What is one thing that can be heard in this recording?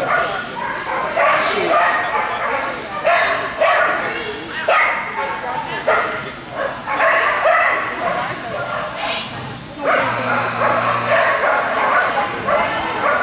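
A woman shouts short commands to a dog in a large echoing hall.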